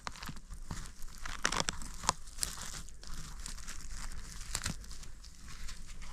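Dry needles rustle softly as something is pulled from the ground.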